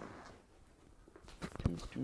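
Footsteps pass close by on a hard floor.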